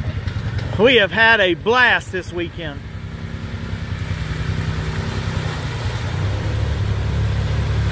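A small off-road vehicle engine hums steadily.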